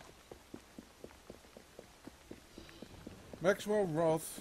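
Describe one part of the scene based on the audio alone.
Footsteps run quickly on wet cobblestones.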